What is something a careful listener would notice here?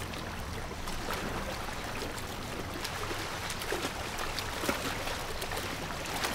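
A swimmer splashes through the water.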